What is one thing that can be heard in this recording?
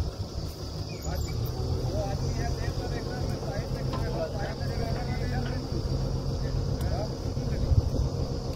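A drilling rig's diesel engine rumbles steadily nearby.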